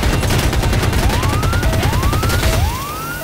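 A warning alarm beeps with rising tones.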